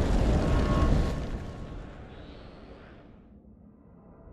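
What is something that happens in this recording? Stormy wind and surf rush and slowly fade.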